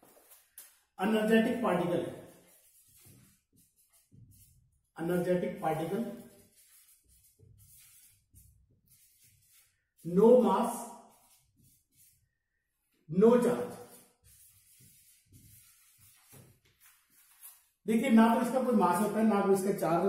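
A man speaks in short bursts, calmly explaining, close by.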